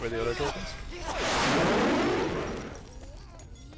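A blade swishes through the air and strikes.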